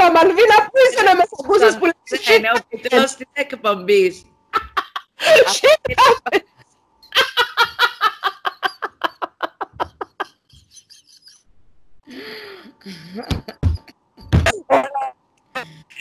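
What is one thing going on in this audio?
A second woman laughs heartily over an online call.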